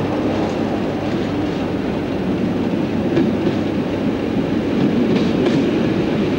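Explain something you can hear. A train's engine idles with a steady low rumble.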